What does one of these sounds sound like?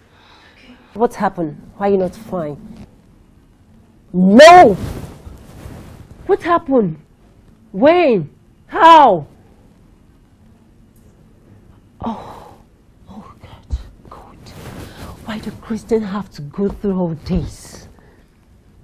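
A young woman speaks tearfully on a phone.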